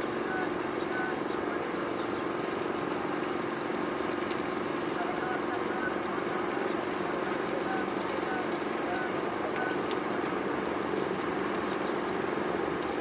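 A city hums steadily in the distance.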